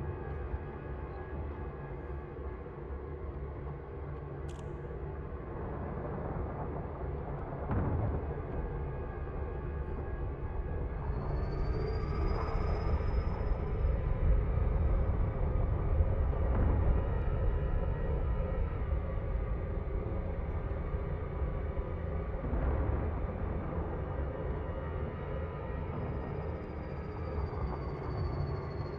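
A spaceship's engines rumble low in flight.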